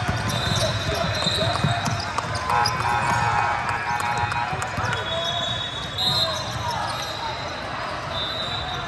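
Basketball shoes squeak sharply on a hardwood floor.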